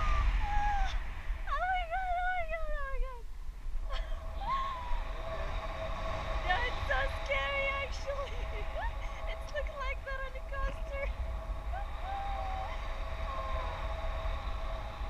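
A young woman speaks and laughs excitedly close by.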